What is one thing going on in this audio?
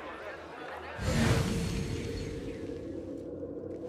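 A deep whooshing boom bursts out suddenly and fades away.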